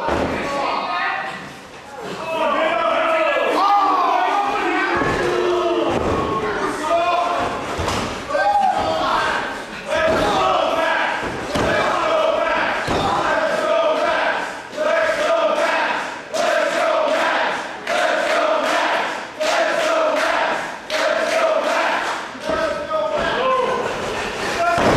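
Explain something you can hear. Bodies thud heavily onto a wrestling ring mat.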